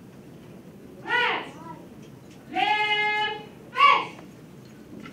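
A woman speaks through a microphone in a large room.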